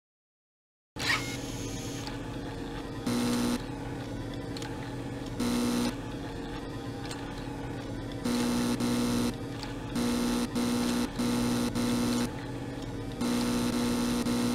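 A desk fan hums steadily.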